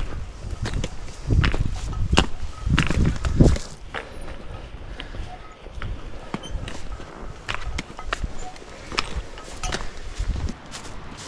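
Footsteps crunch on a dry, stony path.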